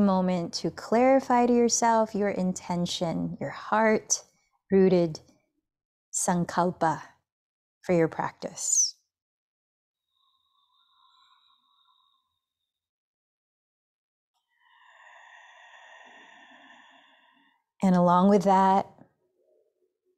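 A woman speaks calmly and softly into a close microphone.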